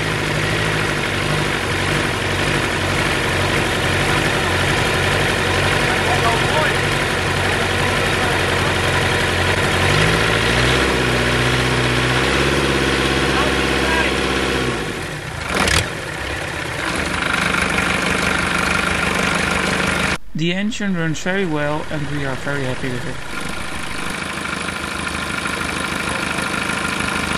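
Water gushes from an exhaust pipe and splashes into a bucket.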